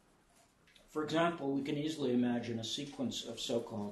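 An elderly man speaks calmly and clearly, close to a microphone.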